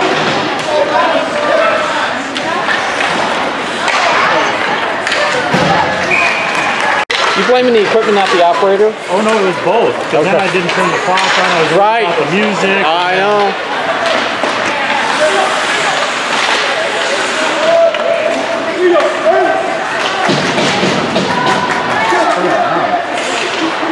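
A crowd of spectators shouts and cheers in a large echoing rink.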